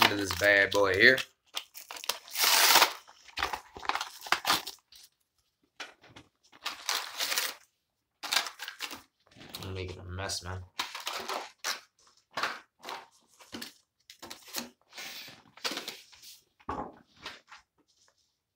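Plastic packaging crinkles and rustles as it is unwrapped.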